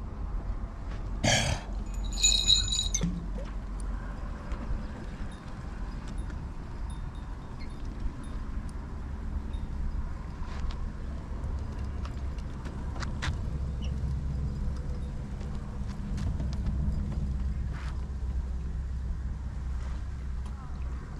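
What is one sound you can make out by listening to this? Wind gusts steadily outdoors, rumbling against the microphone.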